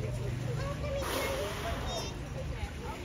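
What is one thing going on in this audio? A hippo snorts a sharp blast of air as it surfaces in water.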